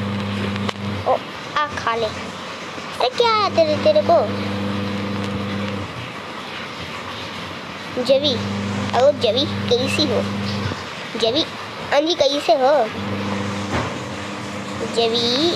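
A boy speaks with animation close to a microphone.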